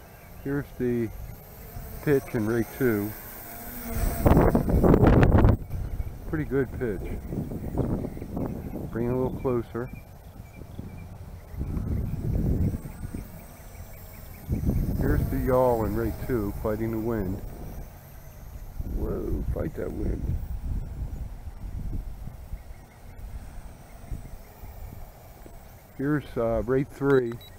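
A small drone buzzes overhead as it flies.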